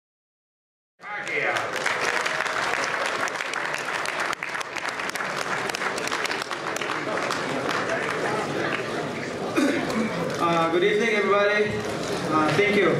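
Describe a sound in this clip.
A man speaks into a microphone, echoing in a large hall.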